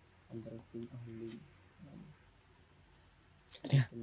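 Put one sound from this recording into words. Leaves rustle as a small monkey scampers through undergrowth.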